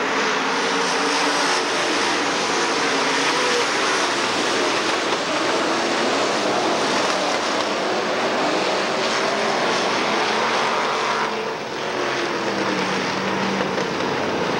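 Race car engines roar loudly around a track.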